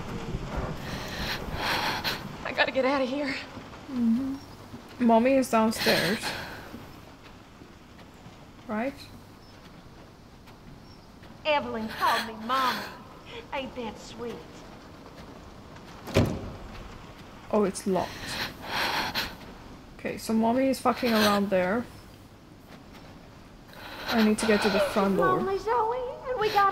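A young woman talks close to a microphone.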